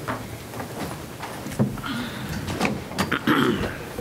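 Chairs shift and creak as people sit down.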